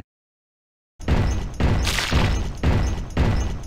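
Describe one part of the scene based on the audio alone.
Paint splats land with soft rhythmic thumps.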